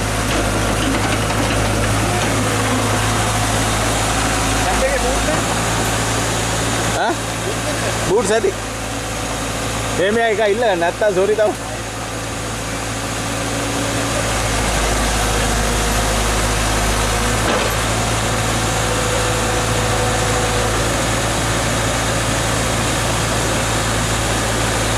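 A large diesel engine rumbles steadily nearby.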